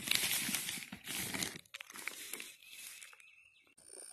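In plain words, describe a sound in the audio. A plastic sheet rustles and crinkles close by.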